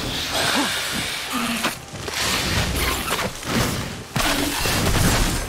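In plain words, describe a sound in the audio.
A creature screeches and growls.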